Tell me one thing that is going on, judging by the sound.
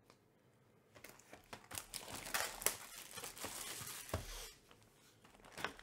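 Plastic wrapping crinkles loudly around a box being handled.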